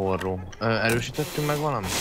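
A power drill whirs briefly.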